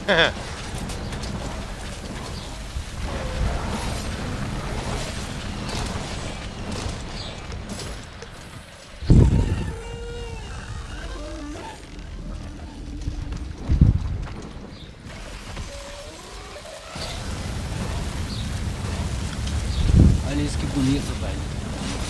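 A huge beast roars and growls.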